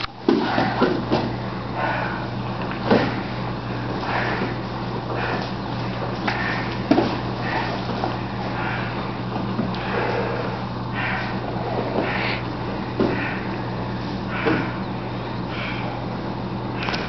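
Two men breathe hard and grunt as they grapple.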